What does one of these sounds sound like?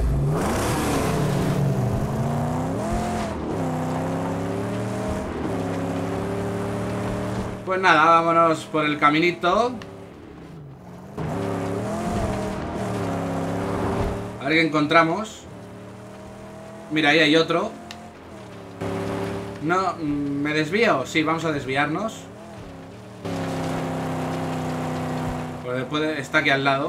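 A car engine drones and revs steadily.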